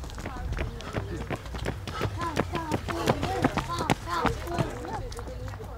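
Running footsteps slap on pavement close by and pass.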